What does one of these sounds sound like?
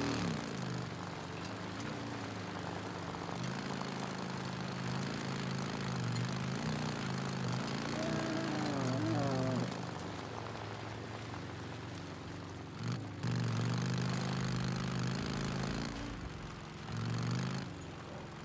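A dirt bike engine revs up and down as the motorcycle rides along.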